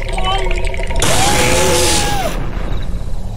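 A loud whoosh rushes past.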